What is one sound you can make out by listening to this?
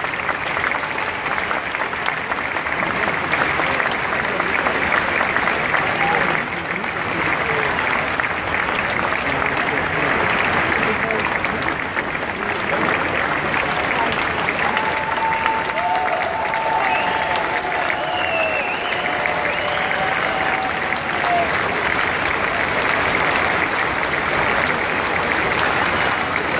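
A large crowd cheers and applauds loudly in a big hall.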